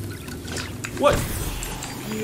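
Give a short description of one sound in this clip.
A magical blast bursts with a loud whoosh.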